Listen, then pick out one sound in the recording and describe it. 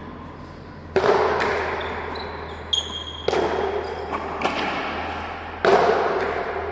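A ball smacks hard against a wall and booms through a large echoing hall.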